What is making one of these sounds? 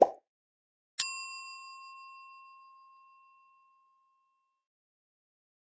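A bell chimes once and rings out.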